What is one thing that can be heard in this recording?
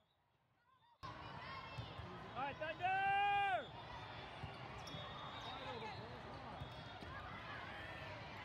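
A volleyball is slapped by a player's hand.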